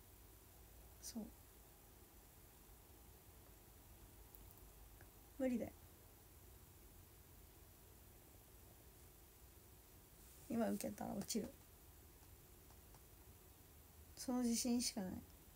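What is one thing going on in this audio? A young woman speaks softly in short bursts, close to the microphone.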